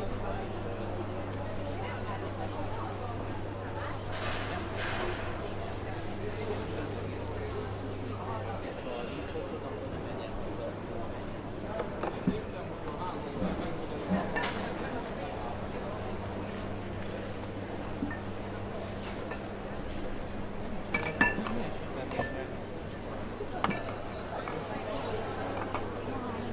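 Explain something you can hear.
Shoppers' voices murmur throughout a large, echoing hall.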